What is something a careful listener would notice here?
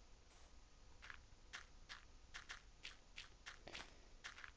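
Footsteps crunch quickly over sand and gravel.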